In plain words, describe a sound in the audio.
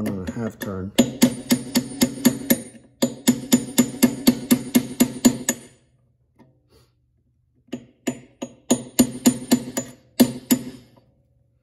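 A hammer taps a brass punch in rapid light blows.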